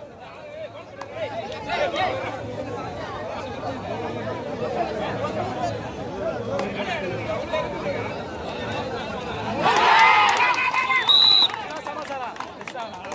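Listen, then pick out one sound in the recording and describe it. A crowd of young men talks and chatters outdoors.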